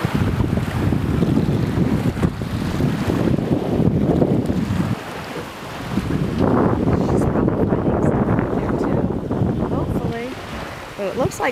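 Shallow water laps and ripples gently close by.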